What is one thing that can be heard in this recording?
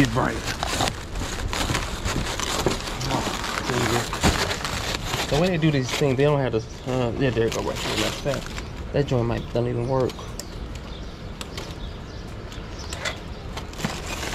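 Plastic wrapping on a pack of bottled water crinkles as a hand grips it.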